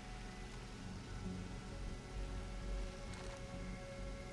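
A gun's metal parts click and rattle as it is handled.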